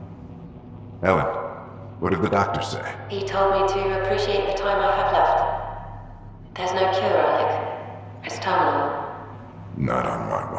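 A woman speaks calmly over a radio link.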